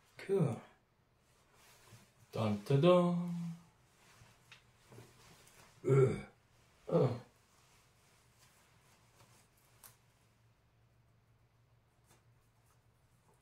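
Fabric rustles as a cape is adjusted.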